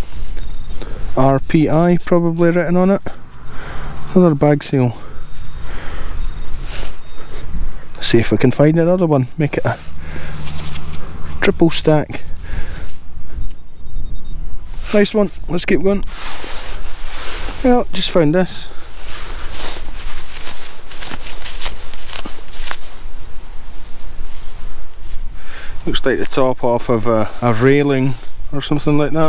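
Gloved fingers rub and scrape soil off a small object.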